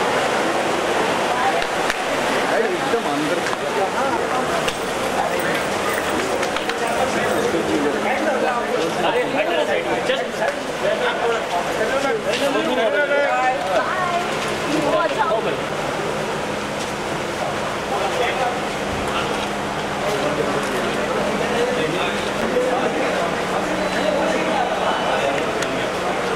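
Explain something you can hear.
A crowd of men and women chatter and call out loudly all around, close by.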